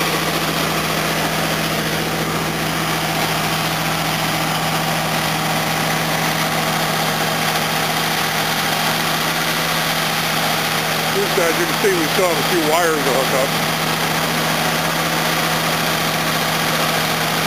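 An engine idles with a steady hum.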